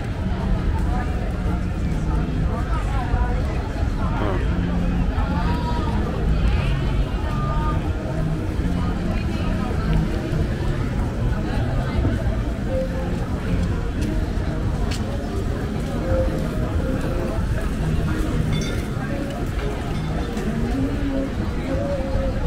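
A crowd of men and women chatters and talks nearby, outdoors.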